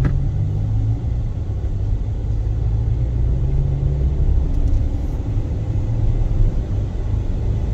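Tyres roll over asphalt, heard from inside a car.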